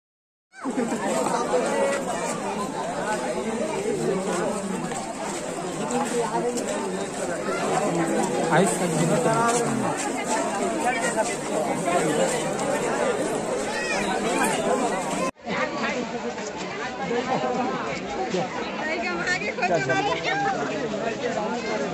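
A large crowd chatters loudly outdoors, with many men and women talking at once.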